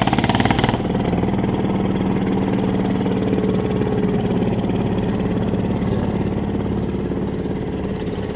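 A truck engine idles nearby with a steady low hum.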